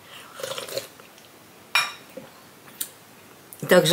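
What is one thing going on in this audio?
A cup clinks on a saucer.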